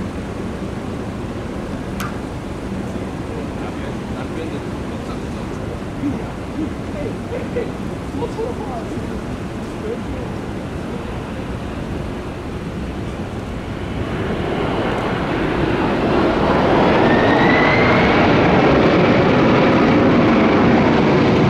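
Jet engines roar steadily as a large airliner comes in to land, growing much louder near the end.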